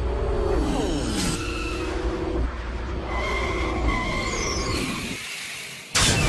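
A small vehicle whirs and rumbles as it rolls along.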